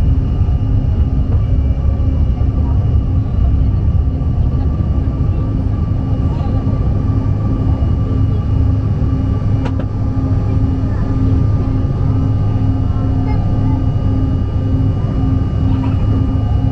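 A jet airliner's engines roar in a steady, low drone inside the cabin.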